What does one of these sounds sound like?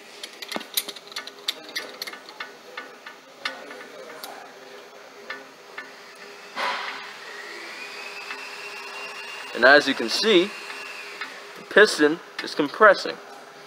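A ratchet wrench clicks as it turns a brake caliper bolt.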